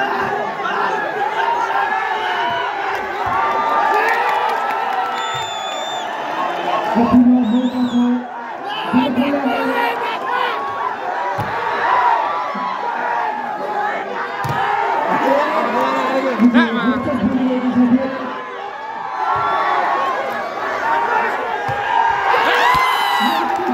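A large crowd outdoors cheers and chatters loudly.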